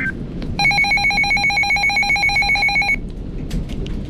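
A weather radio blares a rapid burst of harsh electronic beeps.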